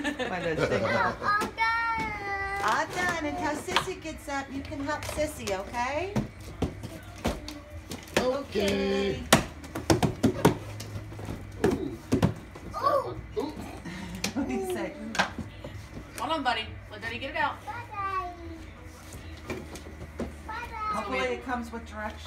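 A small boy babbles and squeals.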